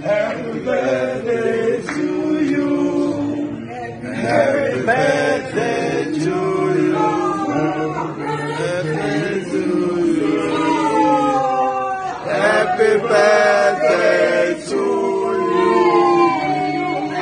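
An older woman sings along nearby.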